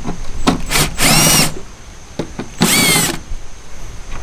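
A cordless drill whirs in short bursts, driving out a bolt.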